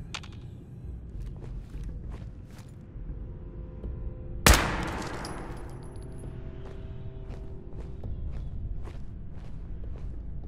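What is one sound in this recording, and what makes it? Footsteps crunch on debris at a steady walking pace.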